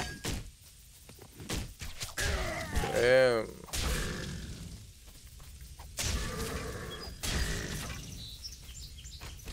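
Sword blows and impacts clash in a fight.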